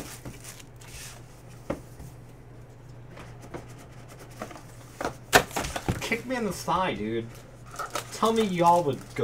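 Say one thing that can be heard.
Cardboard and card packs rustle and tap as hands handle them.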